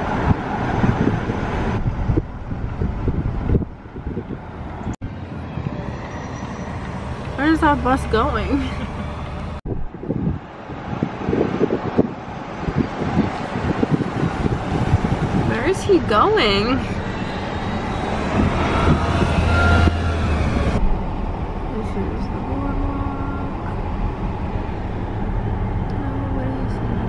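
A car drives along with a steady road rumble.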